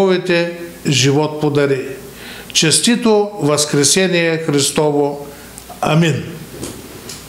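An elderly man reads out calmly into a microphone.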